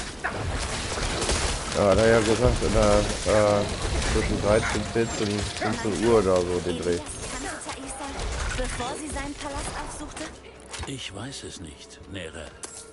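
Weapons strike and magic bursts in a fierce fight.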